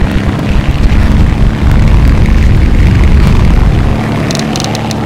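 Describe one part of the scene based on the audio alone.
Wheels rumble along the ground.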